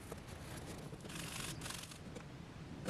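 A cloth rubs briskly across a wooden strip.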